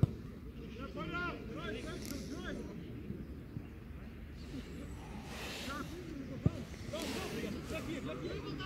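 Players shout to each other across a football pitch outdoors.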